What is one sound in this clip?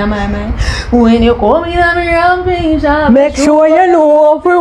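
Two young women sing playfully together.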